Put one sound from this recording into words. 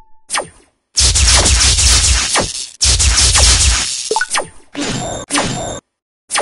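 A loud burst of crackling noise roars.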